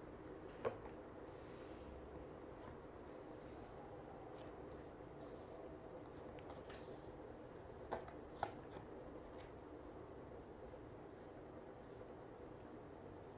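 Cards are laid down one by one on a table with soft taps.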